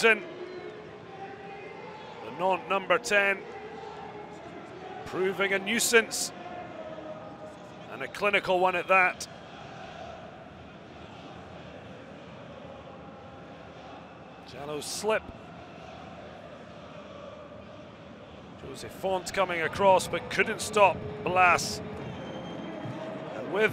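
A large crowd murmurs and roars steadily in a big open stadium.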